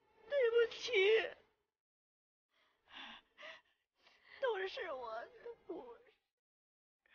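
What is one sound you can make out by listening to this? An elderly woman speaks tearfully close by.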